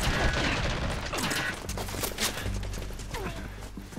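A body thuds to the ground.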